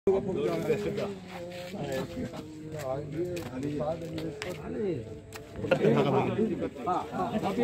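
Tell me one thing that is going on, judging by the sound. Several men talk and murmur at once close by, outdoors.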